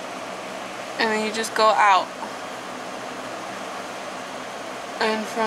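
A woman speaks softly close to the microphone.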